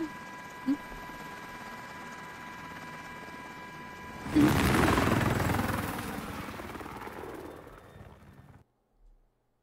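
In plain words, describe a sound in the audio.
A helicopter drones loudly.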